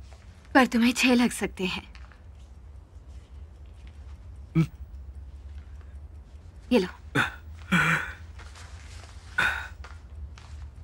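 A young woman speaks intently and close by.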